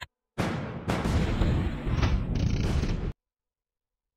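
Game explosions and cannon fire boom loudly.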